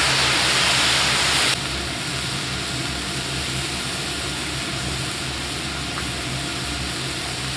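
Food sizzles loudly on a hot griddle.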